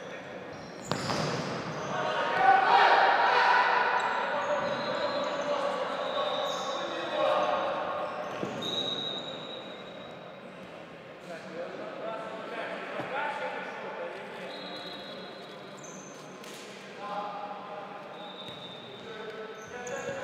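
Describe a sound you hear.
A ball is kicked with sharp thuds in a large echoing hall.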